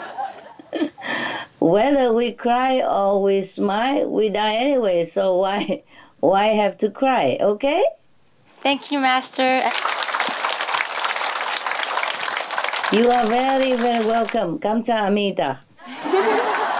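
A middle-aged woman speaks calmly and warmly over a phone line.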